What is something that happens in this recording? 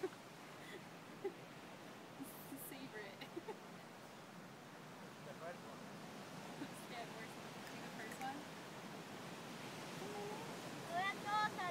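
A group of men and women chat casually nearby.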